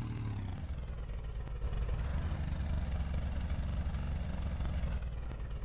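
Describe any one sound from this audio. An off-road vehicle's engine rumbles steadily.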